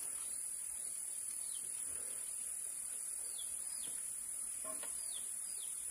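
Bamboo poles knock and rattle lightly against each other.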